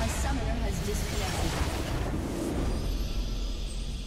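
Magic blasts crash and explode loudly in a game battle.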